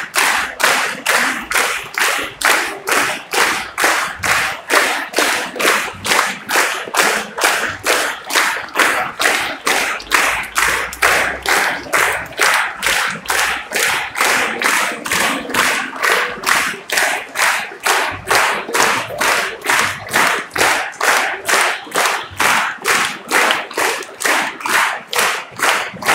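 A large audience claps in unison to a beat.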